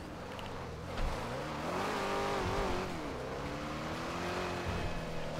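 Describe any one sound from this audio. A car engine revs as the car pulls away and accelerates.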